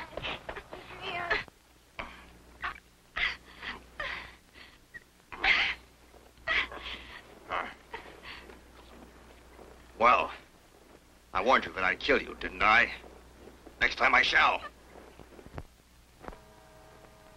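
A young boy cries out and speaks in protest.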